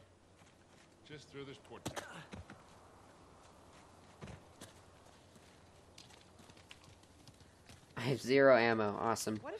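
Footsteps patter quickly over dirt and stone.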